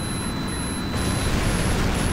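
A missile explodes with a loud blast.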